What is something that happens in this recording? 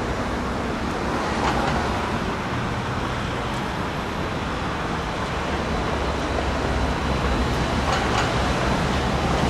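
Construction work rumbles and clanks in the distance outdoors.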